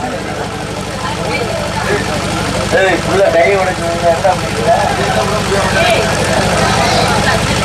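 A drummer beats a set of drums in quick rhythm.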